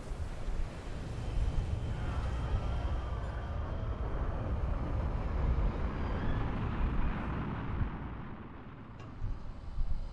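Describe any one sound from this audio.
A deep engine rumbles steadily.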